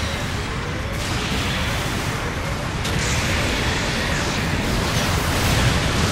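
Laser beams zap and hiss in a video game.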